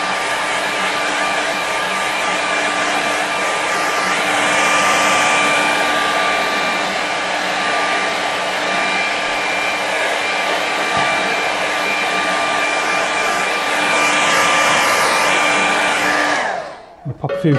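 A hair dryer blows with a steady loud whoosh and whine, then switches off.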